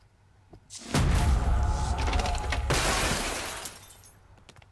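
A body lands heavily on the ground.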